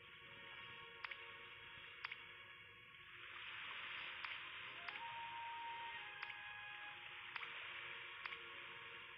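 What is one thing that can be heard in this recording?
Short menu clicks sound as options change.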